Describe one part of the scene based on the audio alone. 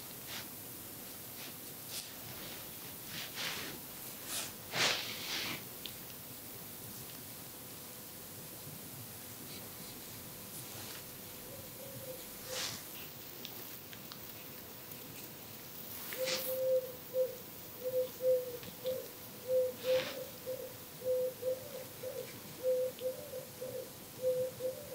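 A swab scratches and rustles softly inside an ear, very close.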